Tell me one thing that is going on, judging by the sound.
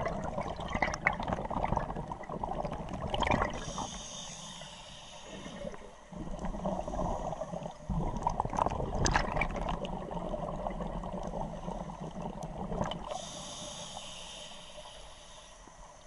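Underwater breathing bubbles burble and gurgle in bursts.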